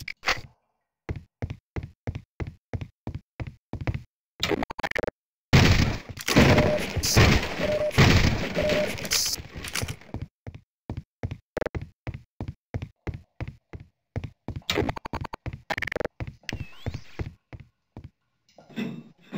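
Quick footsteps clatter on a hard metal floor.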